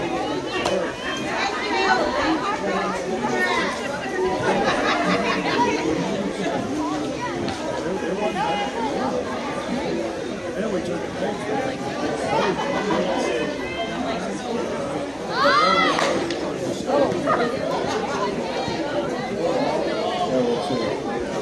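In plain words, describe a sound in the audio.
Young women call out and chatter across an open field.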